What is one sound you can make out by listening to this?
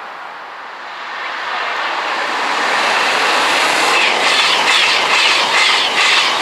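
A train comes in close by with a loud, rising rush.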